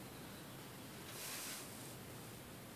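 A sheet of paper rustles briefly as it is shifted.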